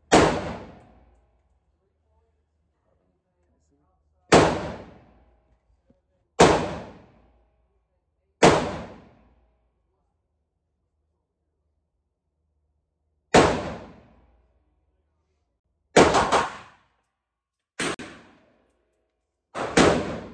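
Pistol shots boom one after another, echoing in an enclosed space.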